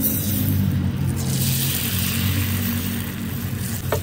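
Raw egg pours into a hot pan with a sudden hiss.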